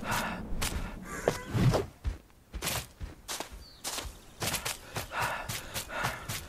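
Footsteps patter quickly over soft ground.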